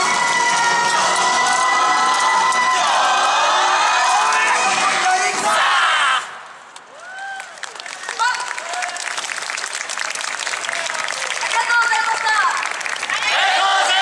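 A group of young men and women shout together in chorus outdoors.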